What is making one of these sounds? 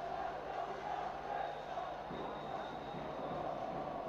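A volleyball thuds on the court floor.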